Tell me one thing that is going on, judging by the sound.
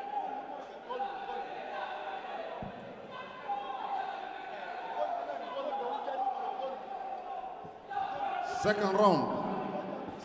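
A crowd of spectators chatters and calls out in a large hall.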